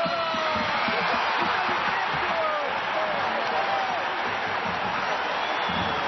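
Fans whistle shrilly in the crowd.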